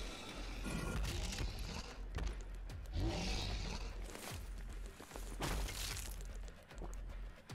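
Flesh squelches and tears wetly.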